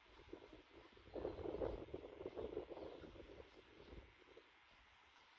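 Leafy branches rustle and scrape close by.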